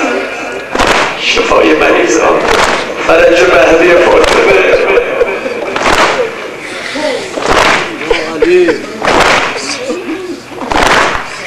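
A man chants loudly through a microphone and loudspeakers.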